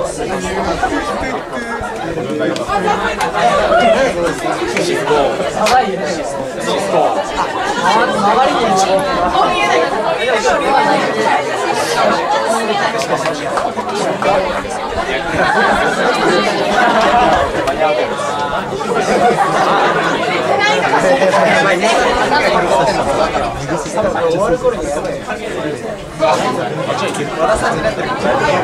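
A rock band plays loudly through amplifiers in an echoing room.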